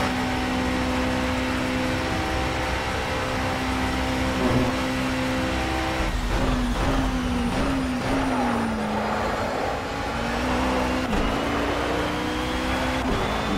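A racing car engine roars at high speed, drops in pitch as the car slows and shifts down, then rises again.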